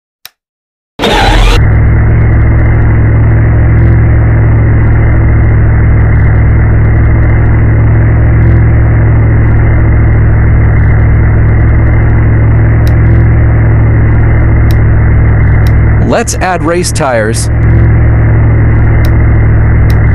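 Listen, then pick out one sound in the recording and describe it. A car engine hums steadily at idle.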